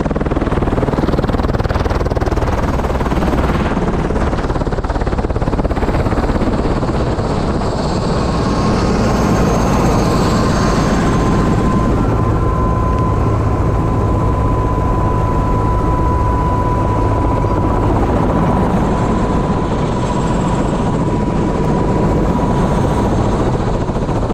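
A helicopter's engine roars and whines steadily close by.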